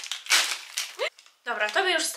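A packet crinkles and rustles.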